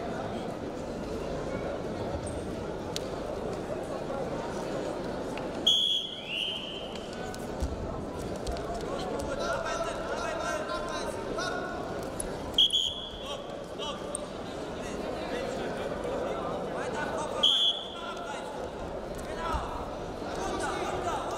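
A large indoor crowd murmurs and cheers, echoing through a big hall.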